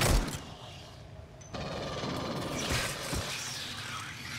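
A rifle fires shots.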